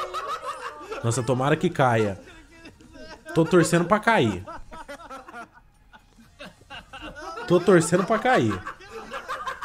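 A young man shouts out in excitement.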